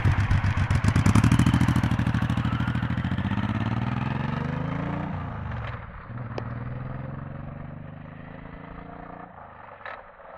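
Gear changes make the motorcycle engine's pitch rise and drop.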